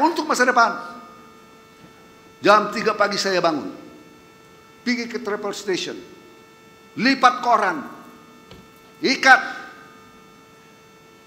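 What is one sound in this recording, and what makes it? A man speaks slowly and formally through a microphone in a large echoing hall, pausing between phrases.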